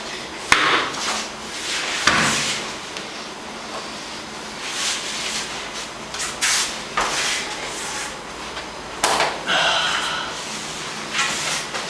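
Bodies thump and roll on a mat as two grapplers wrestle.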